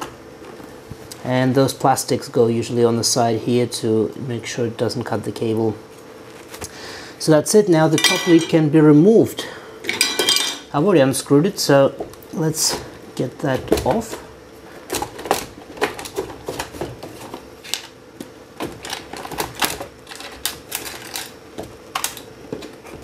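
Hard plastic parts click and knock as they are handled.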